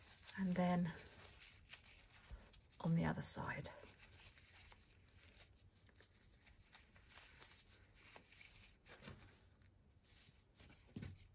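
Soft fluffy fabric rustles as hands handle it.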